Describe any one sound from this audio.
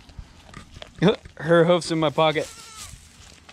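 A young goat bleats loudly several times.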